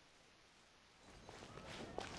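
Light footsteps patter on stone paving.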